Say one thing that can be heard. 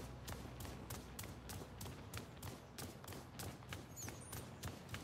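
Footsteps tread steadily on stone.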